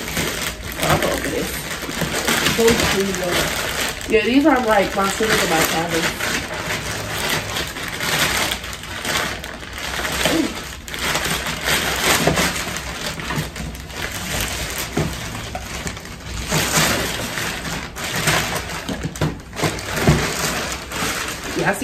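Plastic mailer bags crinkle and rustle as they are torn open.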